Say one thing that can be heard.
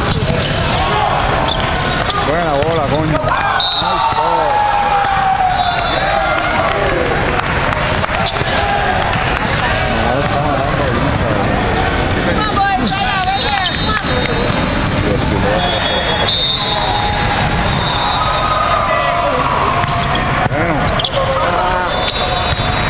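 Many voices chatter and shout in a large echoing hall.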